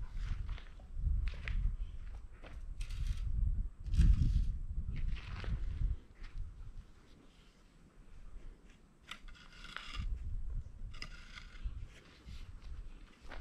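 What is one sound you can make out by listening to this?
A wooden stick scrapes and scratches in dry dirt.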